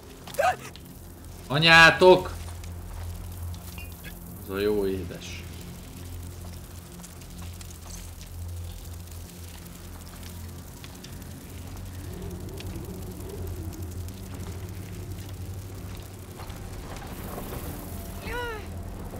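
A middle-aged man speaks briefly into a close microphone.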